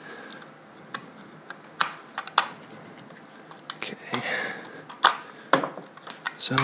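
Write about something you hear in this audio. A utility knife blade clicks and scrapes against plastic.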